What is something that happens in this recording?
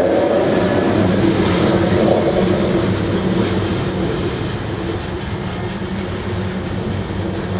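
A freight train rumbles past nearby and fades as it moves away.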